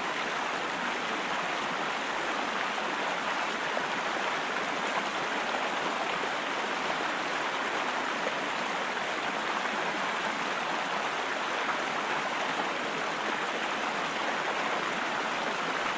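A fast river rushes loudly over rocks close by.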